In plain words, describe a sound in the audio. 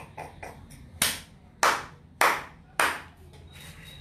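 A woman claps her hands a few times.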